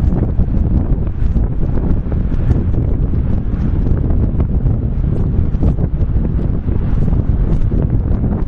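Strong wind buffets and roars outdoors.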